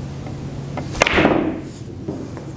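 A cue sharply strikes a billiard ball.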